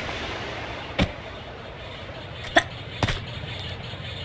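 Hands grab onto a rock ledge with short thuds.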